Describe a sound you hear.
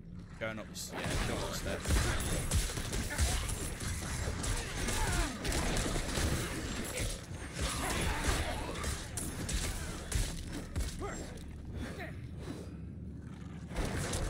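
Fighting effects in a video game clash and thud.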